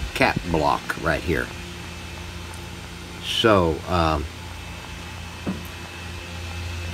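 An electrical hum drones steadily and low.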